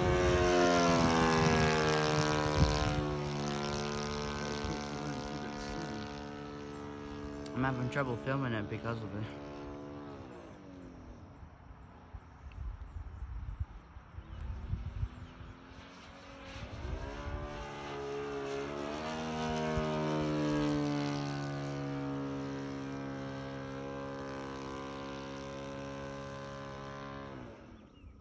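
A small propeller plane drones overhead, its engine pitch rising and falling as it passes.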